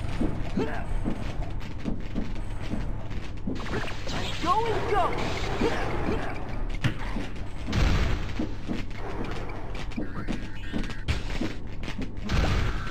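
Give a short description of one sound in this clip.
Quick footsteps patter as a game character runs.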